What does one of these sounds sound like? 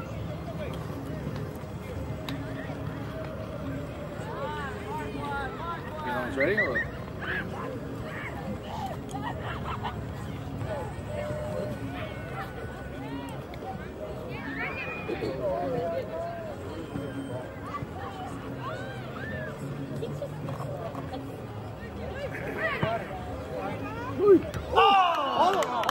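Adults shout encouragement from the sidelines outdoors.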